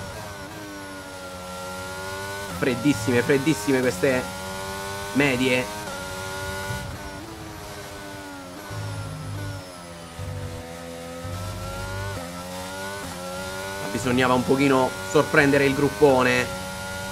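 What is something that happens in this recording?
A racing car engine screams at high revs, rising and dropping with each gear change.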